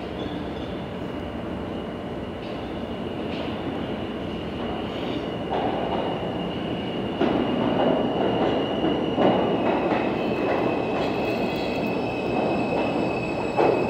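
A subway train rumbles into an echoing station, growing steadily louder as it approaches.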